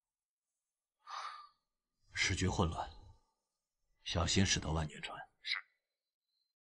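A man speaks calmly and firmly.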